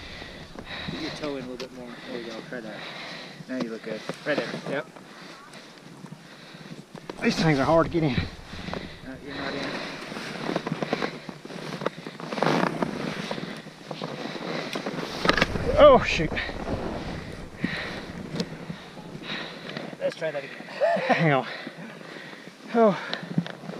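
A man talks nearby in a lively voice.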